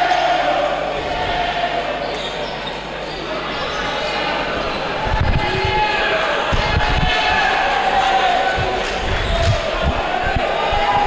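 A crowd murmurs and chatters throughout a large echoing gym.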